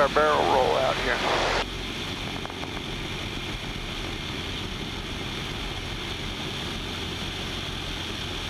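Wind rushes past the plane.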